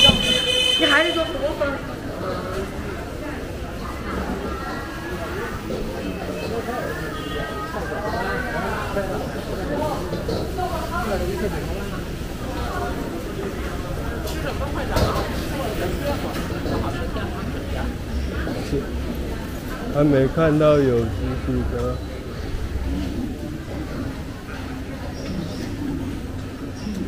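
Men and women chatter nearby along a busy street outdoors.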